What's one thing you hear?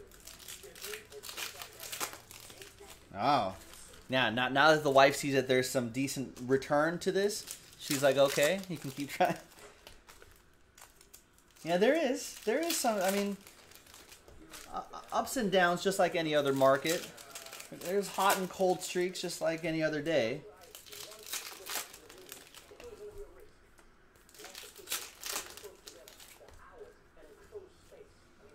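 Foil card wrappers crinkle and tear.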